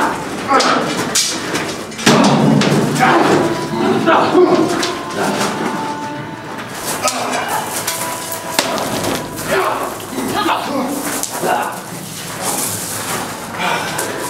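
Weapons clash and knock together.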